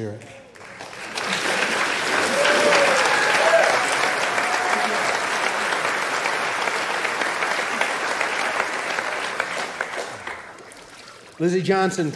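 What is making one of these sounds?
A crowd claps loudly.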